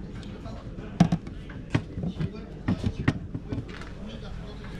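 A wooden box lid knocks and clatters.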